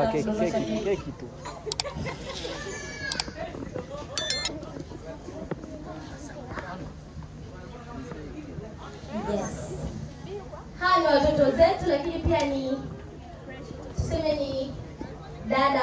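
A young woman speaks with animation into a microphone, heard through loudspeakers.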